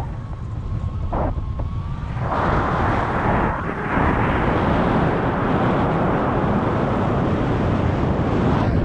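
Strong wind roars and buffets against a microphone, growing louder after a moment.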